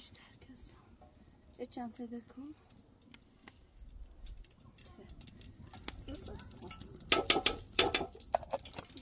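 A spoon scrapes and taps inside a metal pot.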